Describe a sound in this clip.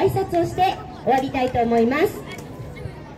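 Young children chant loudly together outdoors.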